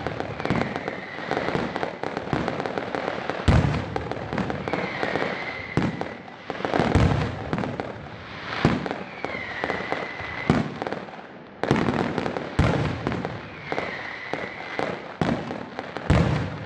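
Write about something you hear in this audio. Fireworks crackle and fizz continuously.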